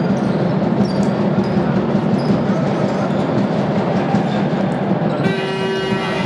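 A basketball thuds as it is dribbled on the floor.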